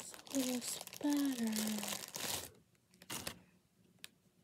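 Plastic wrap crinkles.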